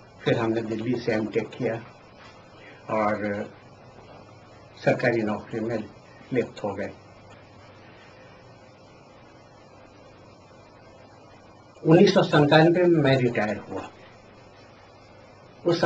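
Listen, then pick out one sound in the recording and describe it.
An elderly man speaks calmly into a microphone, close by, with pauses.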